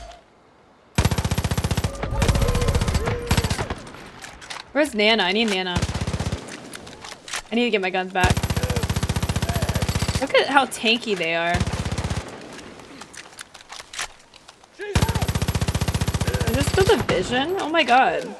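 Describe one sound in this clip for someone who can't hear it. A rapid-fire gun shoots in long, loud bursts.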